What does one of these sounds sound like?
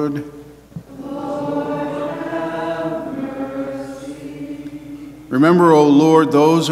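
A man chants slowly through a microphone in a large echoing hall.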